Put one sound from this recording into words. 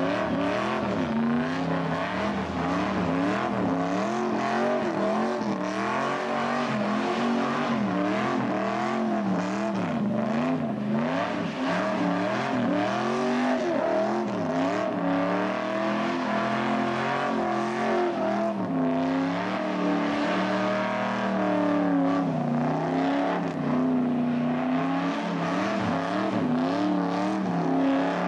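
Tyres screech as they spin on the road.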